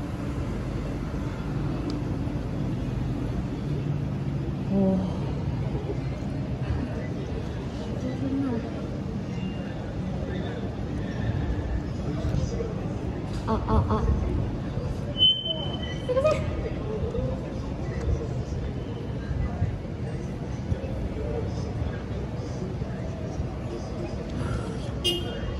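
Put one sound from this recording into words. A young woman talks through a microphone and loudspeaker.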